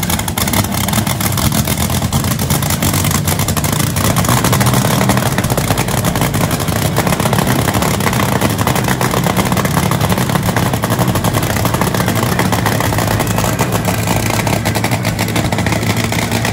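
A dragster engine idles with a loud, rough, rapid rumble.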